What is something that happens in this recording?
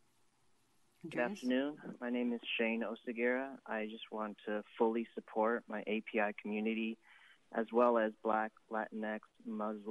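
A woman speaks steadily over a phone line played through a loudspeaker.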